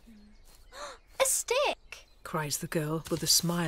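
A young girl talks excitedly.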